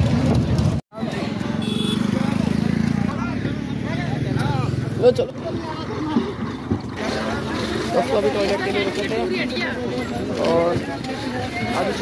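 Several men talk outdoors.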